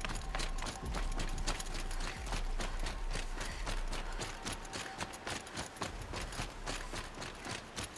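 A game character's footsteps thud quickly through grass.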